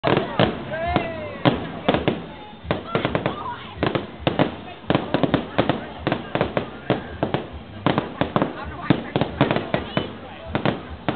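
Firework rockets whistle as they shoot up.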